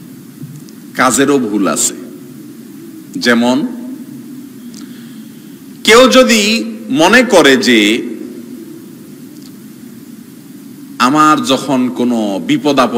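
A man preaches into a microphone in loud, emphatic bursts with pauses between them.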